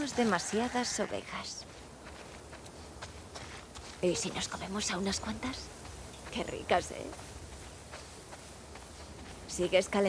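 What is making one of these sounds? Footsteps crunch through dry grass.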